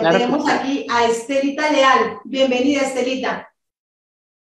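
A middle-aged woman talks with animation over an online call.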